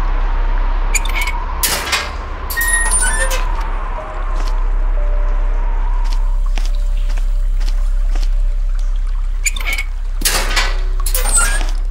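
A metal barred door rattles against its lock.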